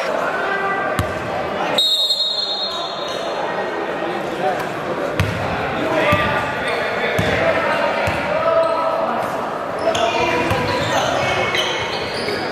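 A basketball bounces with hollow thuds in an echoing gym.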